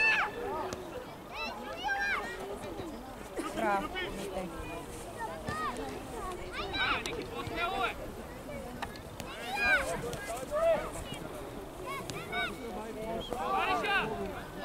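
Children shout and call out across an open field outdoors.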